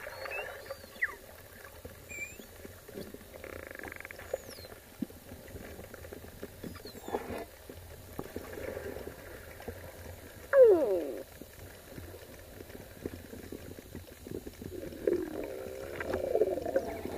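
Pilot whales click underwater.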